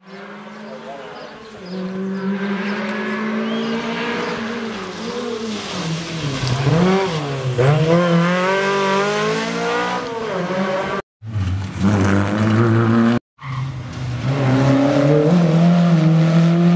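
A rally car engine roars and revs hard, rising and falling in pitch.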